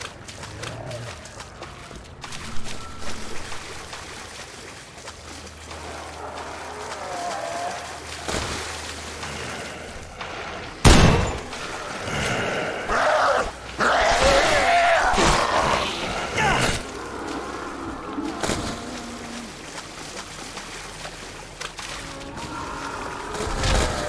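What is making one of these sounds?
Water sloshes and splashes as someone wades through a flood.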